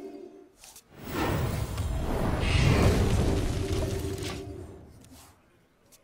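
A loud explosion booms and rumbles, then fades away.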